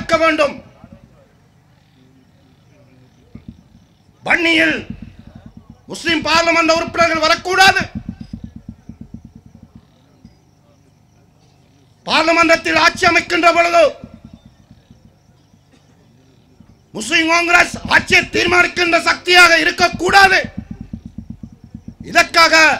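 A man speaks forcefully into a microphone in bursts, heard through loudspeakers with a reverberant echo.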